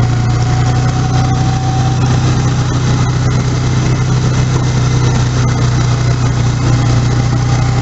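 Snow hisses and sprays against the side of a snowmobile.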